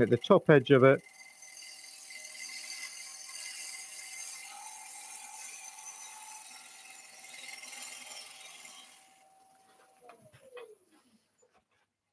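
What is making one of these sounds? A lathe motor hums and winds down.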